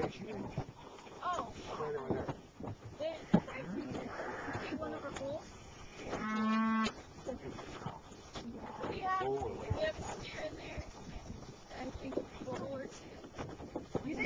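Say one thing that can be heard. A woman talks calmly close by, outdoors.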